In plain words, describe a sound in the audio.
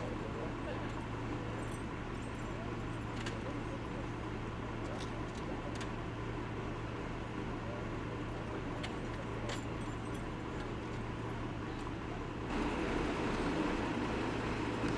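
A large truck engine hums steadily nearby.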